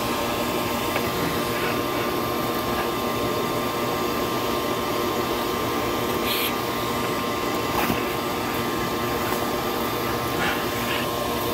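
Debris rattles up a vacuum hose.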